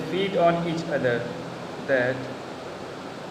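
A young man speaks close to the microphone.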